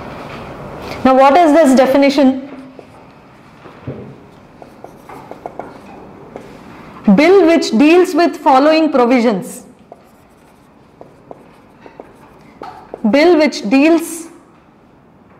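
A young woman speaks through a microphone in a calm, lecturing voice.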